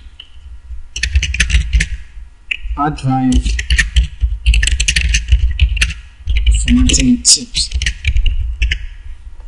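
Keys on a keyboard click rapidly as someone types.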